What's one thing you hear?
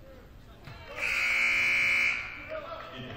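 A referee's whistle blows one long, loud blast.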